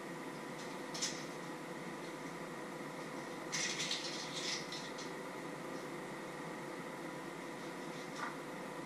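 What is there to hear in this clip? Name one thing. Kitchenware clatters and clinks nearby.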